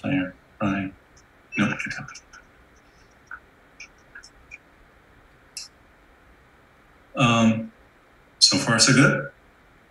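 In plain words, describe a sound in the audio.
A man speaks calmly through an online call microphone, in short phrases with pauses.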